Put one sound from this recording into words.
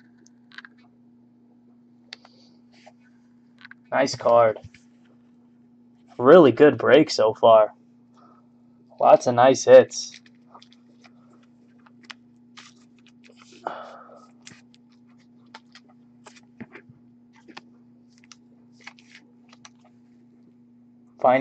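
Trading cards rustle and slide between fingers.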